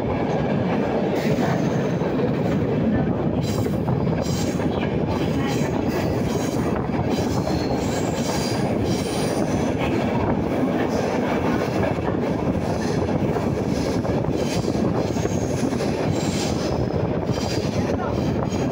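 Wheels clatter and squeal on the rails.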